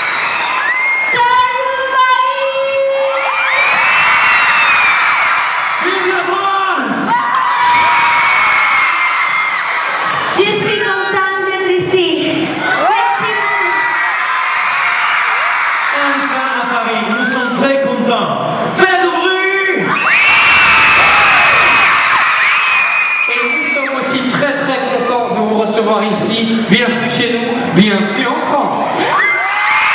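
Young singers' voices ring out over loudspeakers.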